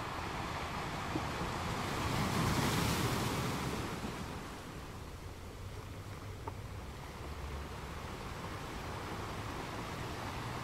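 Ocean waves crash and roll onto rocks, swelling and easing in a steady rumble.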